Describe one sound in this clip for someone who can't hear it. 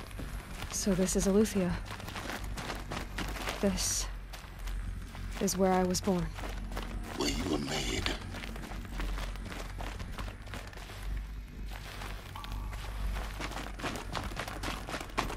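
Footsteps crunch on a hard floor at a walking pace.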